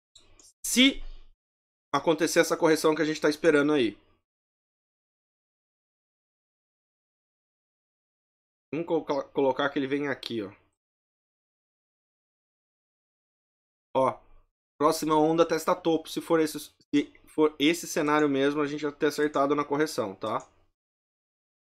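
A man speaks calmly and close to a microphone, in bursts with pauses.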